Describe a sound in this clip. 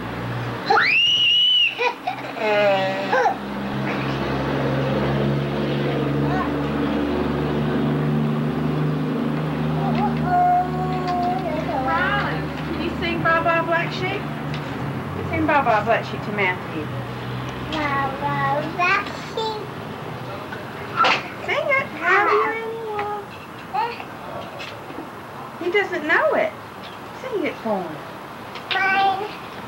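Small children babble and squeal nearby.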